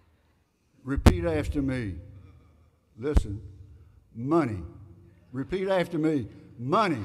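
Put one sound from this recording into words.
An elderly man speaks with animation into a microphone.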